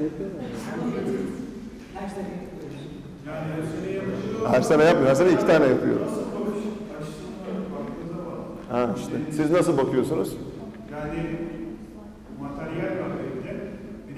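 A man talks with animation, close by in a room.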